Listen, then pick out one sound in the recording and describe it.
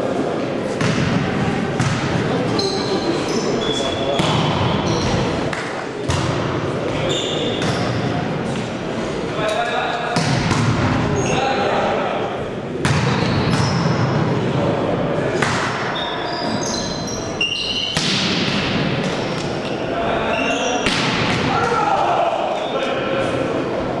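Young men shout to each other during play.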